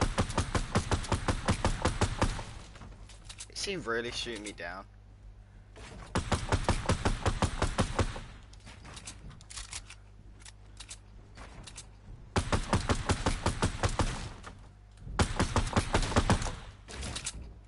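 Wooden pieces snap into place in rapid, clattering bursts.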